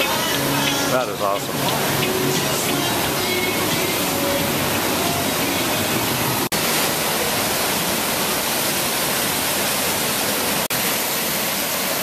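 Rushing water roars loudly and steadily outdoors.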